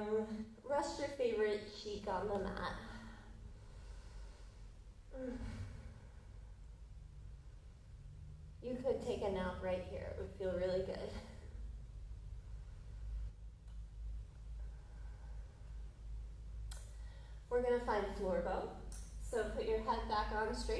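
A woman speaks calmly, giving slow instructions.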